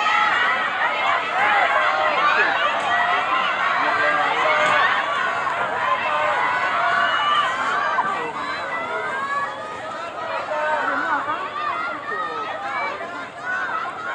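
A crowd of spectators cheers and shouts encouragement.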